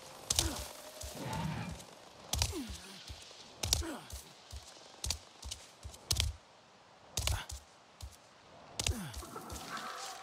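Hands grab and thump on rock while climbing.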